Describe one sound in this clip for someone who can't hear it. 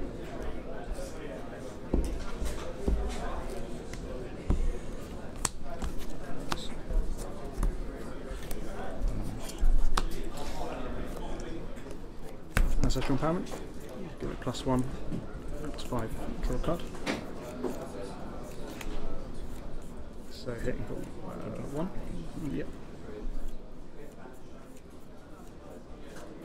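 Playing cards slide and tap on a table.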